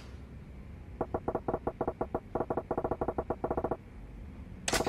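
Rapid ticking blips sound in a quick burst.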